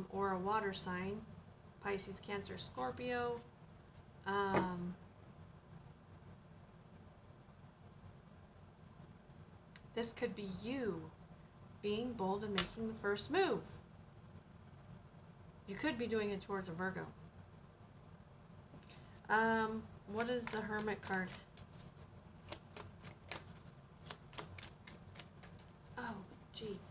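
A woman speaks calmly and close by, in short bursts with pauses.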